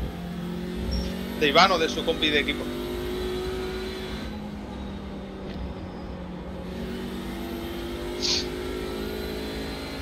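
A racing car engine drones steadily, rising and falling with the throttle.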